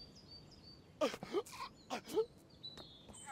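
A man speaks loudly and excitedly.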